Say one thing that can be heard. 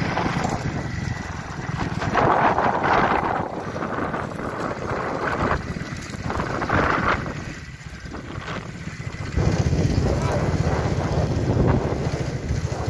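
Wheels of light carts rumble over a dirt track.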